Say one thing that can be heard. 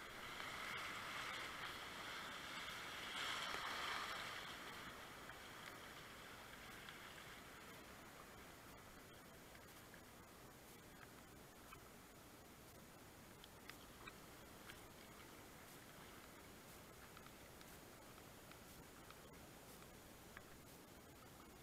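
A paddle splashes and drips in the water.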